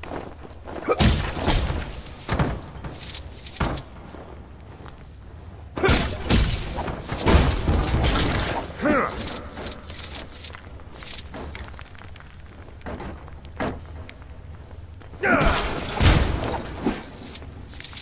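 Toy bricks clatter and crash as objects break apart.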